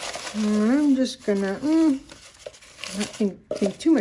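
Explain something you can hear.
Scraps of paper rustle and crinkle as a hand sorts through them.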